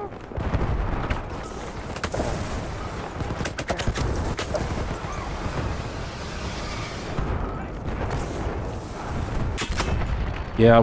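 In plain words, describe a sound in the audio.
Gunshots crack and echo.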